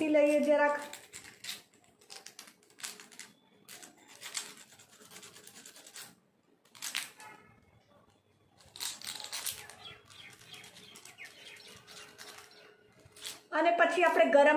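Paper crinkles softly as hands handle it.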